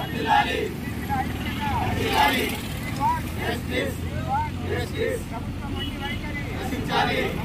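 A crowd of men chant slogans loudly together outdoors.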